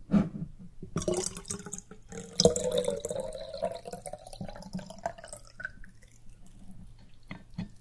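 Liquid pours steadily into a cup, its pitch rising as the cup fills.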